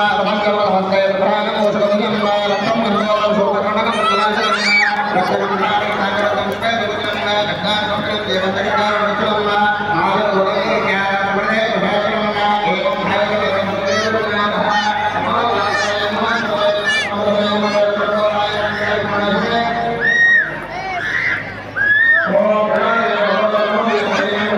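A large crowd of people chatters and calls out loudly all around.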